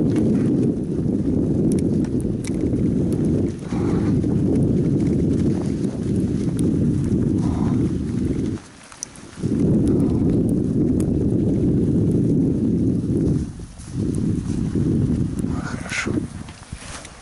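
Skate blades scrape and rumble steadily across ice.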